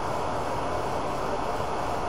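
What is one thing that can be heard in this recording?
A spray can hisses briefly.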